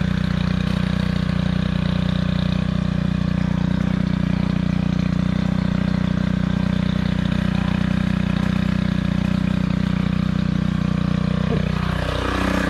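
A string trimmer engine idles with a steady hum.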